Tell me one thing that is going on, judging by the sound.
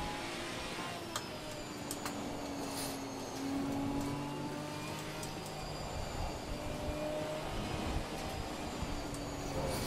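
Rain and water spray hiss steadily against a car.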